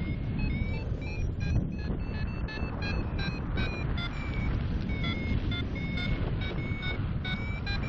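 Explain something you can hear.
Strong wind rushes and buffets loudly against the microphone.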